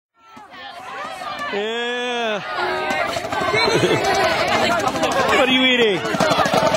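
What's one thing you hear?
A crowd of young people chatter and shout loudly close by.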